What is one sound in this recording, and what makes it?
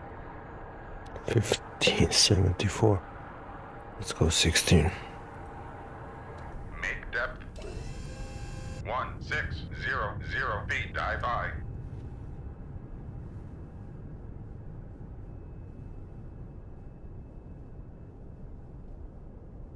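A submarine engine hums low and steadily underwater.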